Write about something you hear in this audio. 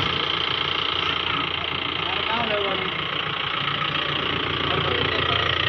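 A car engine idles steadily.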